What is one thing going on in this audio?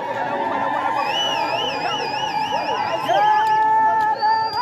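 Women ululate in high trilling cries.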